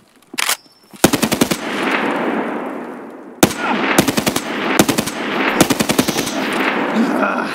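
A rifle fires loud shots that echo and roll away outdoors.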